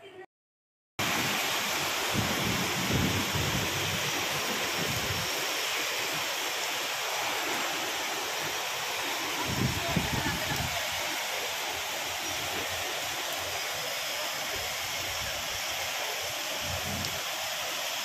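Steady rain falls and patters on a wet road outdoors.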